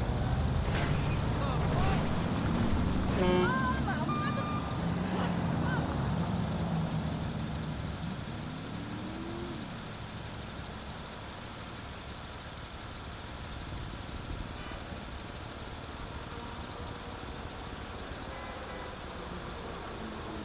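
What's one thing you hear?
A truck engine rumbles as it drives along a road.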